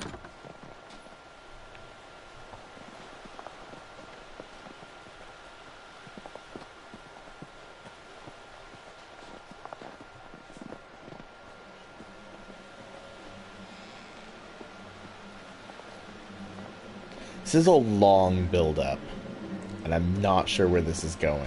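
Footsteps crunch slowly through snow.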